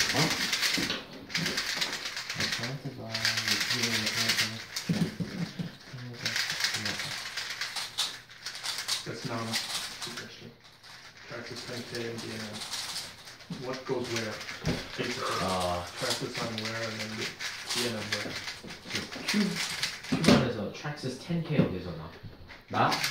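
Puzzle cubes click and clatter as they are turned quickly.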